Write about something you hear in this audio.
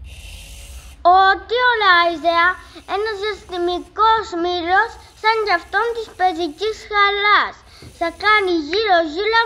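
A toy robot plays a bright, bouncy electronic tune.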